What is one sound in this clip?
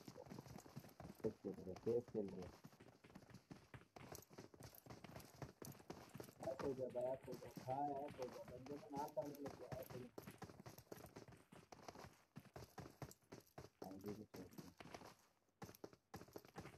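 Footsteps patter quickly across wooden boards.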